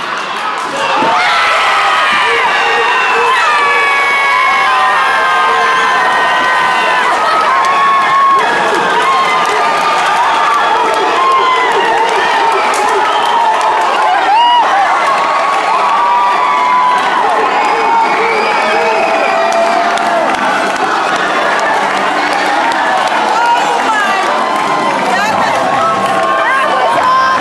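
A man close by shouts with excitement.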